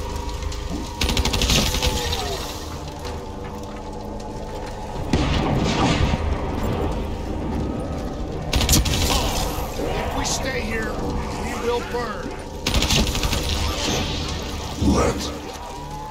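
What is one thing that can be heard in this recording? A rifle fires in loud bursts.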